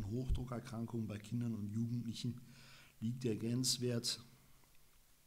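A young man reads aloud calmly, close to a microphone.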